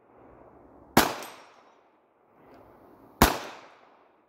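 A pistol fires two sharp, echoing shots outdoors.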